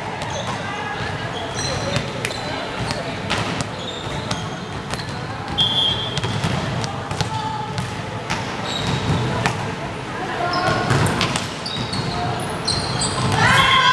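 Sneakers squeak sharply on a hard gym floor, echoing in a large hall.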